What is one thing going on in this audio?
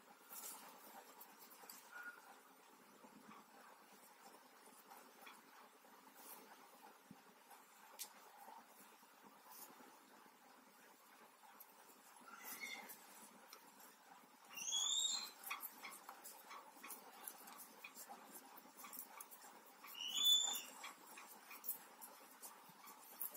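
Knitting needles click and tap softly against each other.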